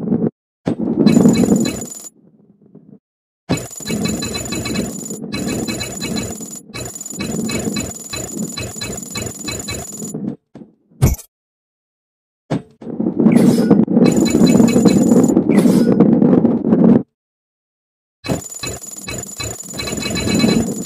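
Game coins chime quickly as they are collected.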